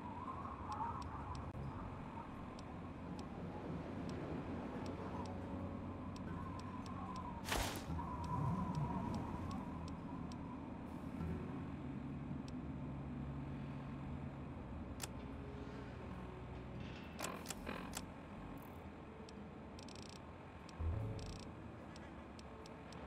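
Short electronic clicks sound as menu items are scrolled through.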